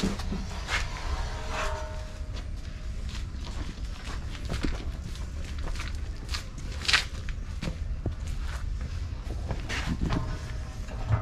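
A metal sheet clanks and wobbles while being carried.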